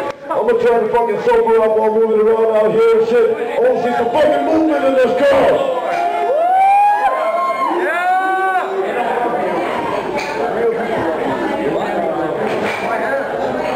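A man raps loudly into a microphone through loudspeakers.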